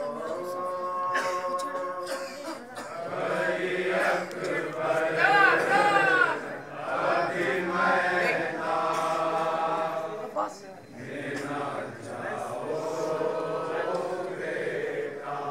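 A group of men chants along in unison.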